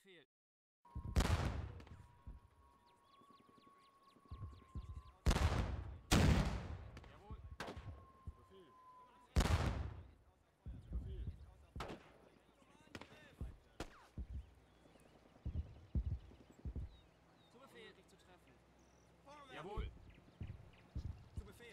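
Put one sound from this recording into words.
Small arms crackle in bursts.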